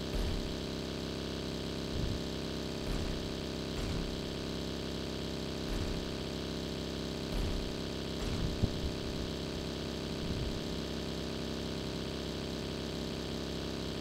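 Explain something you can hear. A buggy engine drones steadily.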